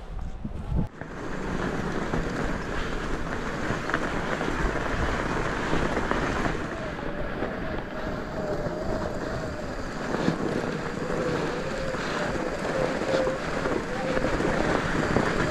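Bike tyres roll and crunch over packed snow.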